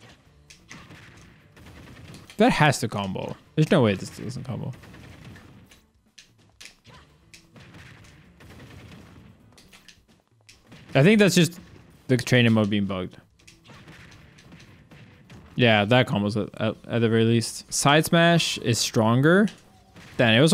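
Game fighters clash with quick hits and whooshes.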